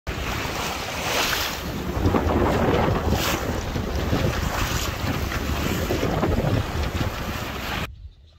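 Water rushes and splashes along the hull of a moving sailboat.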